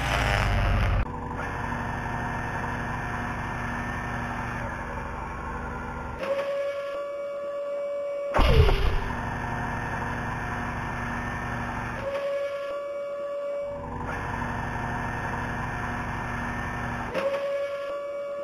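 A crane motor hums steadily as the crane swings and lifts its load.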